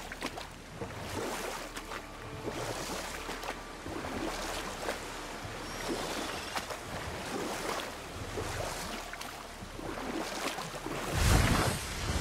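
Oars splash softly in water.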